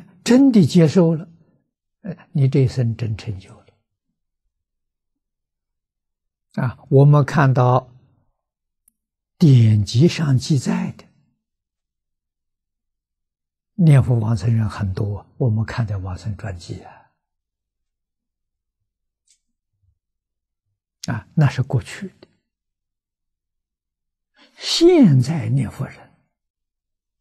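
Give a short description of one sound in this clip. An elderly man speaks calmly into a microphone, in short phrases with long pauses.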